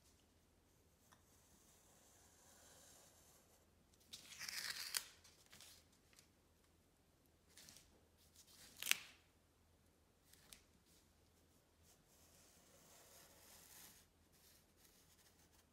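A pencil scratches along paper.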